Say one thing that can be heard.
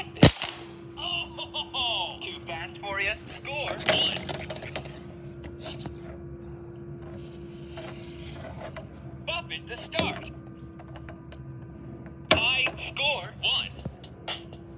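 A small electronic toy plays warbling sound effects.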